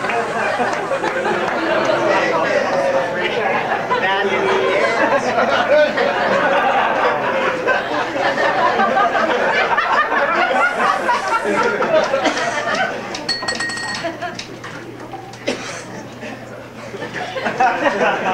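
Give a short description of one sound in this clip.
A typewriter clacks as keys are struck.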